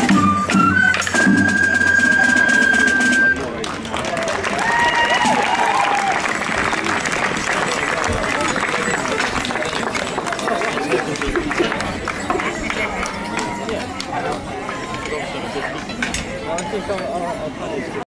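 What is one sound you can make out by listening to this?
Small bells jingle on the legs of stepping dancers.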